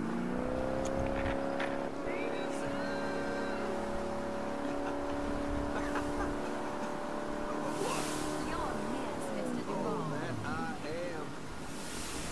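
Water churns and splashes behind a motorboat.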